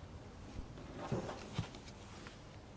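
Paper rustles as a man gathers it up.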